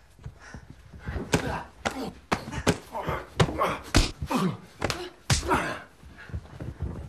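A young woman gasps and cries out with effort.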